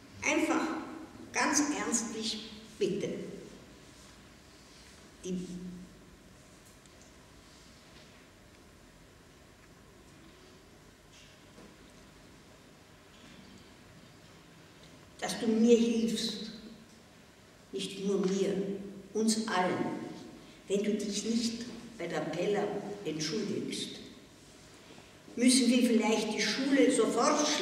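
An elderly woman speaks slowly into a microphone, with long pauses.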